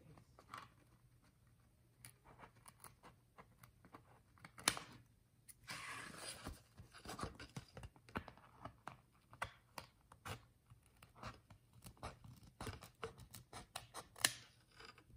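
Scissors snip through paper in short, crisp cuts.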